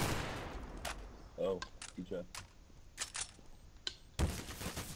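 A rifle is reloaded with metallic magazine clicks.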